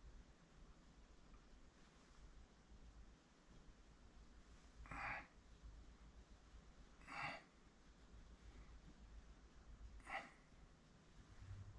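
Fingers rub and smooth soft clay.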